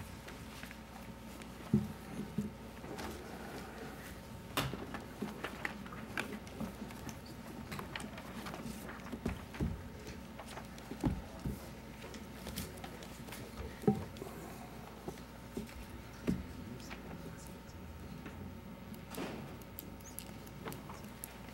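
Paper rustles and shuffles close to a microphone.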